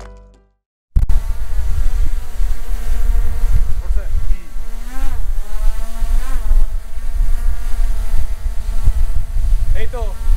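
A drone hovers nearby with a steady, high buzzing whine.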